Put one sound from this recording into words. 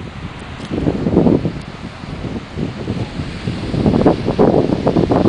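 Small waves wash gently onto a shore in the distance.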